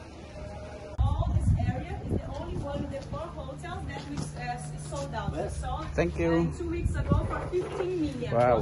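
Several men chat nearby.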